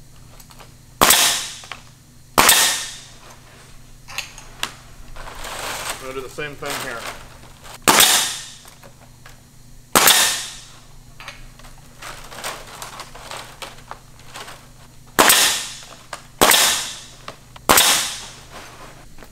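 A pneumatic nail gun fires with sharp bangs, each followed by a hiss of air.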